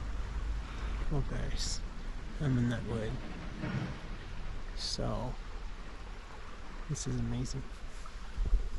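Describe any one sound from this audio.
A young man speaks calmly and cheerfully, close to a microphone.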